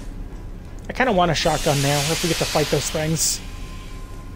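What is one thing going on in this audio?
Steam bursts out with a loud hiss.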